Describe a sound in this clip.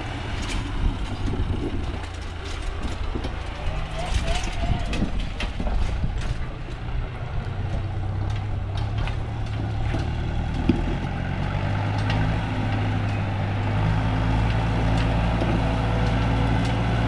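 A tractor engine idles nearby with a low steady rumble, growing louder.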